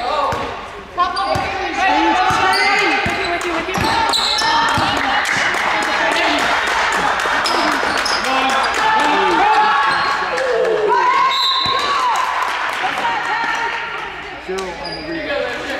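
A crowd shouts and cheers in a large echoing gym.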